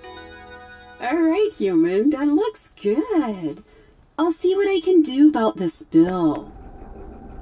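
A robot speaks in a synthetic, warbling voice.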